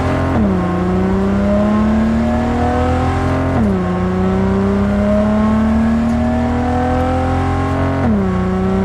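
A sports car engine roars, rising in pitch and dropping sharply with each gear change.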